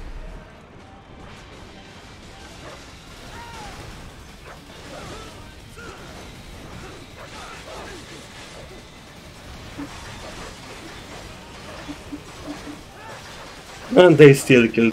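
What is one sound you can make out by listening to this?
Metal blades clang and scrape against armour.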